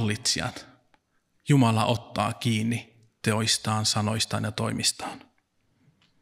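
A man speaks calmly into a microphone in a reverberant hall.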